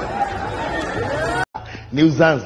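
A crowd cheers noisily.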